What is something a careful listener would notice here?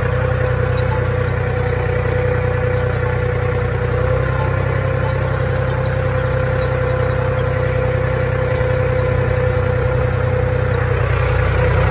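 A planting machine rattles and clanks as it moves.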